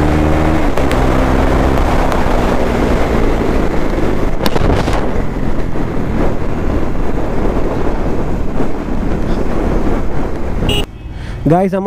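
Wind rushes past the microphone.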